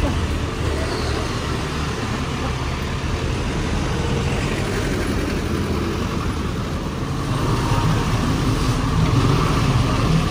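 Motorbikes ride past close by.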